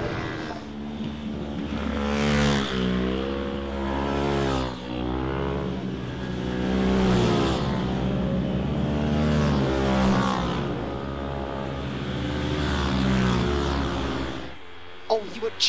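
Racing motorcycle engines roar past, rising and falling in pitch.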